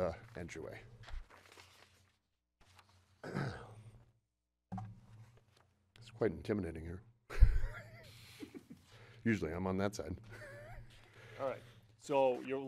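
A man speaks into a microphone in a calm, conversational voice.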